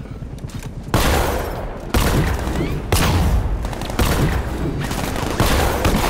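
Gunfire bursts out loudly in a game.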